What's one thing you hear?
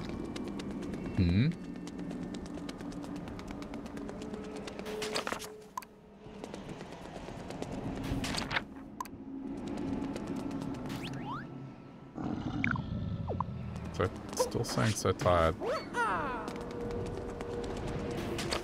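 Quick light footsteps patter on stone.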